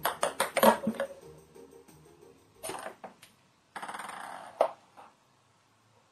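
A small ball knocks and rolls across a hard floor.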